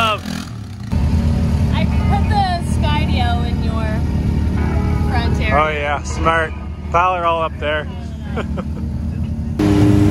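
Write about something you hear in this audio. A side-by-side vehicle engine idles with a low rumble.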